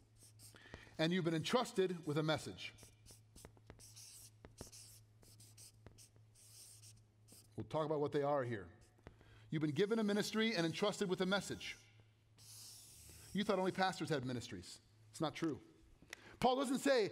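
A man speaks into a microphone in a calm, explanatory way.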